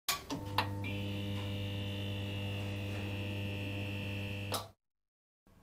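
A neon sign hums and buzzes steadily.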